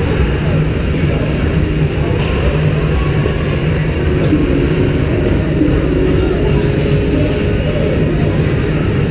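Hockey sticks clack against the ice and puck.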